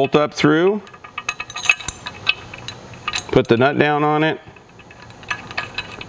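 Small metal parts click softly as they are fitted together by hand.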